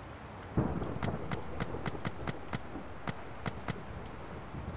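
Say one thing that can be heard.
Short, sharp menu ticks sound in quick succession.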